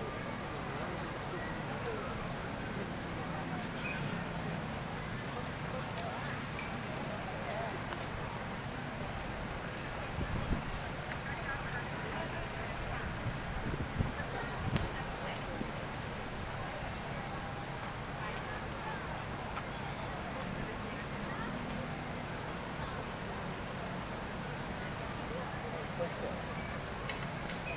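Traffic hums steadily at a distance.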